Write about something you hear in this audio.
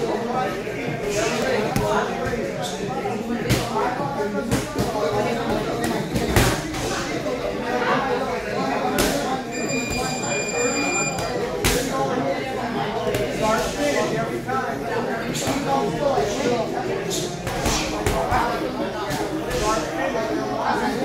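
Gloved punches thud against a heavy bag in quick bursts.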